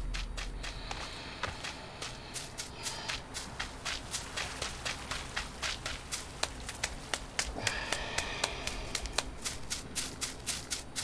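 Footsteps run quickly through grass.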